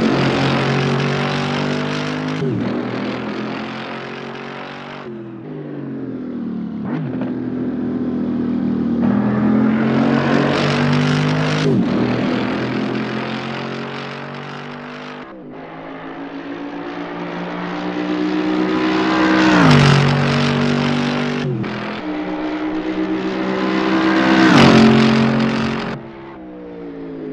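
A sports car engine revs and roars, shifting gears as it passes close by.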